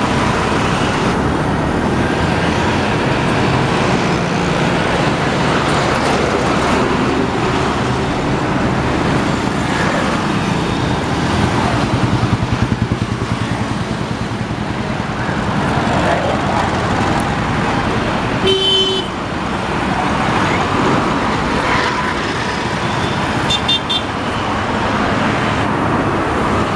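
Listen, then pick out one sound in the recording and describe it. Traffic rumbles past steadily.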